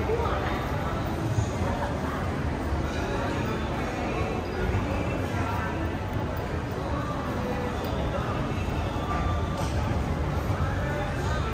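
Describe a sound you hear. A crowd murmurs and chatters throughout a large, echoing indoor hall.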